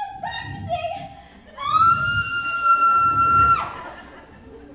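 A woman sings a long, high, held note in an echoing hall.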